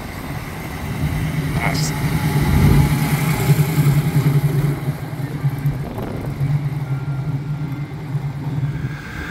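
A classic muscle car's engine burbles as the car cruises past.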